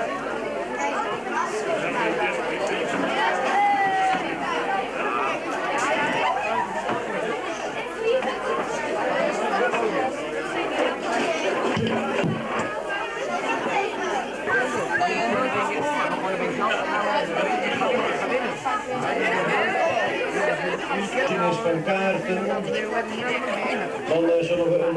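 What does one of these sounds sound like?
A crowd of children and adults chatters in a busy echoing room.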